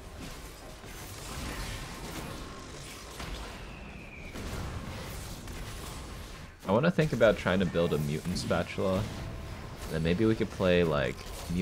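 Magical spell effects whoosh and crackle in a battle.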